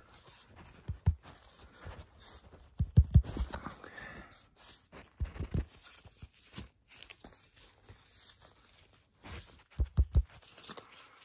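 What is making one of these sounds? A wooden stick knocks and thumps close by.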